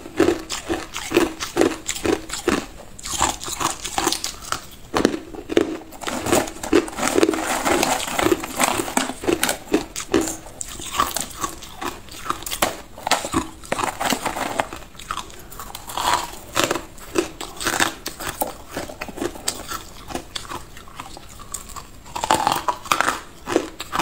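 Ice crunches loudly as a woman bites and chews it close to a microphone.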